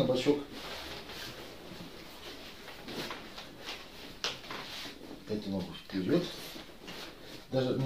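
Cloth rustles as it is handled.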